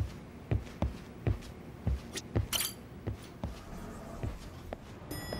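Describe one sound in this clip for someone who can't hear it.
Footsteps thud at a steady walking pace on a hard floor.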